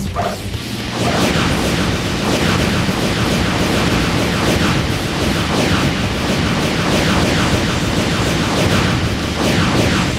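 A video game character unleashes a loud, crackling energy attack that whooshes on and on.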